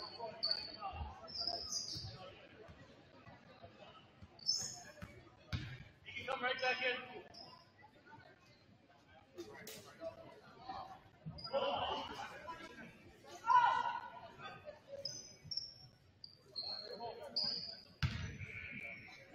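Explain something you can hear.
A basketball bounces on a hard court.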